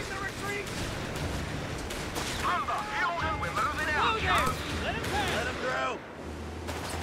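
Gunfire crackles and explosions thud in a battle.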